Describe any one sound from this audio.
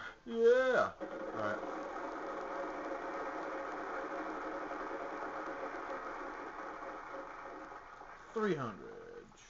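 A game's prize wheel whirs steadily as it spins, heard through a television speaker, then stops.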